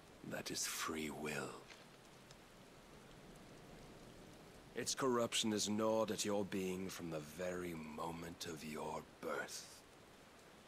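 A man speaks slowly and gravely.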